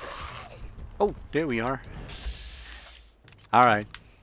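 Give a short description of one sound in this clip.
A creature snarls loudly.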